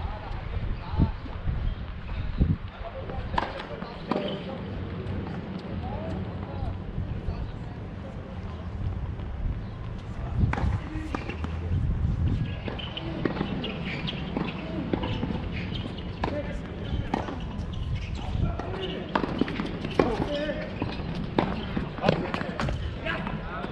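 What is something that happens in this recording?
A tennis ball is hit with a racket, with sharp pops.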